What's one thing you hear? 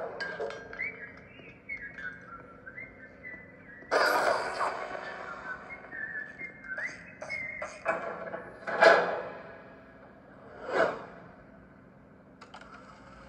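A tablet game plays music and sound effects.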